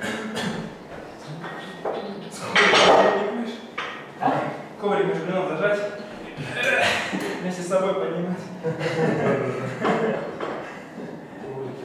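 A man talks with animation nearby in an echoing room.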